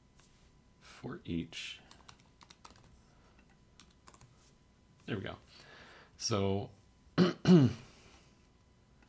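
A man speaks calmly in short phrases into a close microphone.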